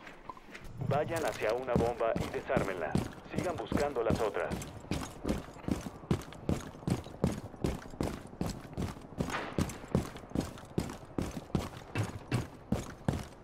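Footsteps tread quickly and steadily on hard ground.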